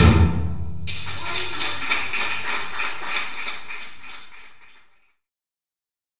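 A woman beats a large frame drum with a steady rhythm.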